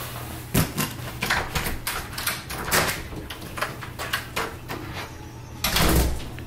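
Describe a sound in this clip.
A door opens and then shuts.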